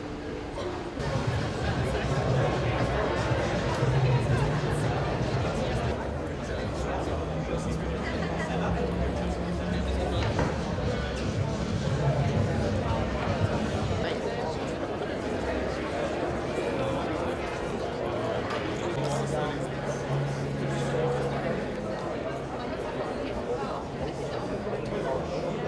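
A crowd of adults chatters in a large hall.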